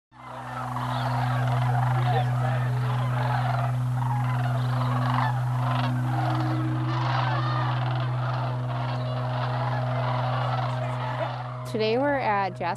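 A large flock of cranes calls in a dense, steady chorus far and near.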